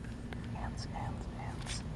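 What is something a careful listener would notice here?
A small plastic piece clicks against a plastic toy track.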